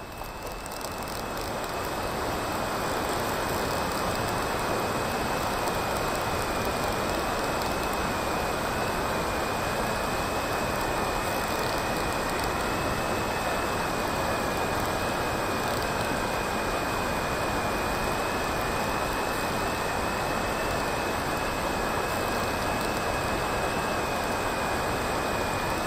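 Water rushes and hisses past a foiling racing catamaran at speed.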